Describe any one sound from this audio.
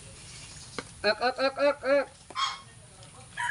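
A bird calls with loud, repeated squawks.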